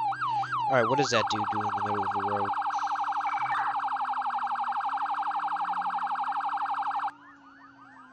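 A police siren wails rapidly.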